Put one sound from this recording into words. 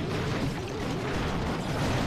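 Electric zaps crackle.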